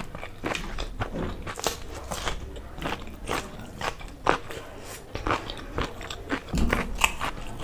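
Fingers squish and mash soft food on a plate.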